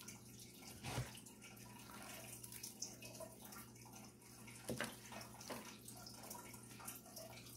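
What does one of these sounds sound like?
A plastic tray scrapes and knocks as it is slid across a table.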